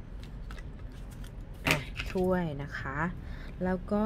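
A card is laid down on a cloth with a soft tap.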